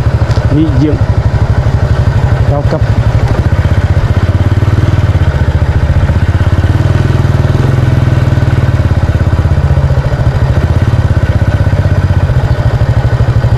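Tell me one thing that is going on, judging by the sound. A motorbike engine hums steadily up close as it rides along.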